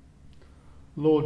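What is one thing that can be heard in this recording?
An older man speaks calmly in a large, echoing room.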